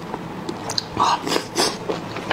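A man slurps food loudly close to a microphone.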